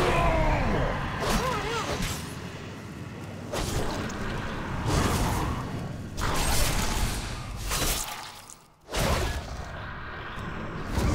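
Magic spells whoosh and crackle in repeated bursts.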